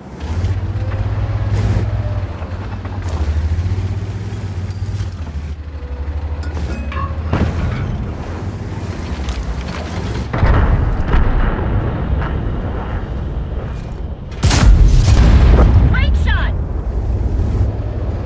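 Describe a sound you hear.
A heavy tank destroyer's engine rumbles low as it drives.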